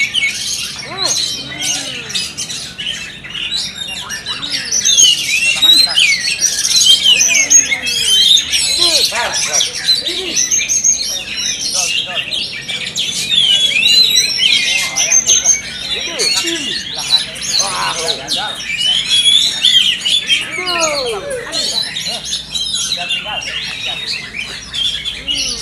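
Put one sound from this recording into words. A caged songbird sings loud, varied trilling phrases close by.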